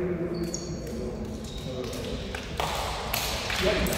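Sneakers squeak on a hard gym floor as players move around.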